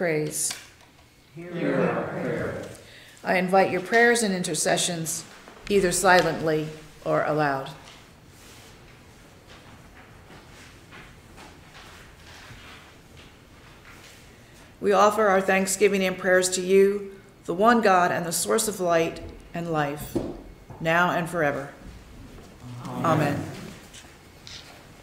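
A woman speaks calmly and slowly into a microphone, in a room with a slight echo.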